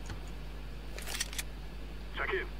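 A weapon is switched with a metallic click.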